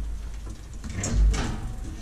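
An elevator button clicks as it is pressed.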